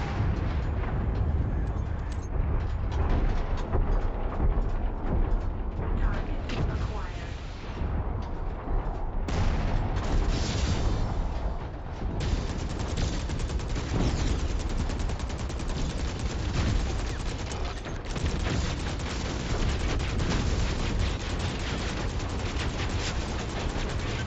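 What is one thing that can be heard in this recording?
Heavy mechanical footsteps thud steadily.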